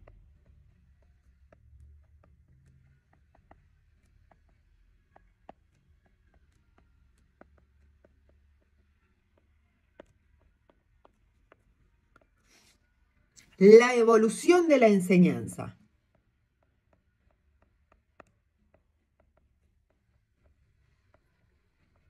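A pen taps and scratches faintly on a tablet.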